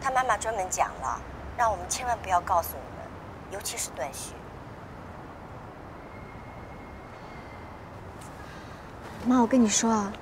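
A young woman talks on a phone close by, in a worried tone.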